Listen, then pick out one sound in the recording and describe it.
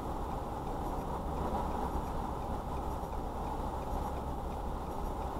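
A car engine idles with a steady low rumble, heard from inside the car.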